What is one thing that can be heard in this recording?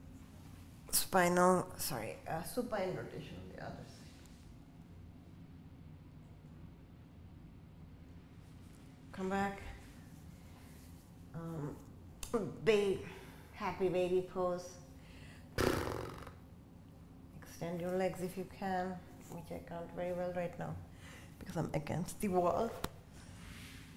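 A woman speaks calmly and slowly, close by.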